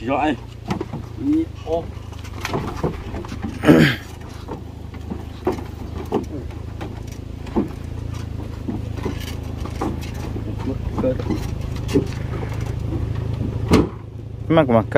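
A motorbike clanks and knocks against a truck's metal bed.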